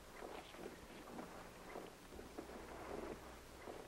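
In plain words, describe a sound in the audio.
A man speaks calmly and steadily, heard through an old, hissy recording.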